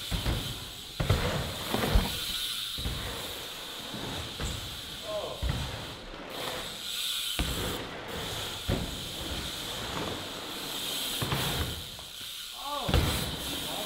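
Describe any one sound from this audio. A bike lands with a hard thud on concrete.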